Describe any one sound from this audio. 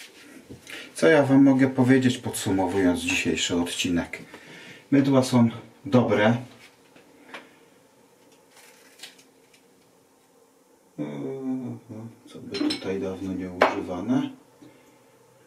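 A middle-aged man talks close by, in a casual tone.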